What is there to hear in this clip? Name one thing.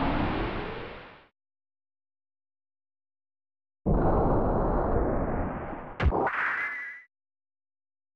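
Explosions boom and roar with a crackling rumble.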